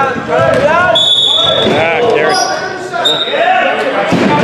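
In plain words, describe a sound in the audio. A referee's whistle blows.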